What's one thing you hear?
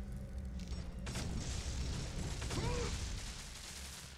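A heavy stone slab grinds and rumbles as it slides open.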